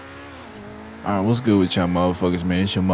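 A sports car engine roars loudly in sharp bursts.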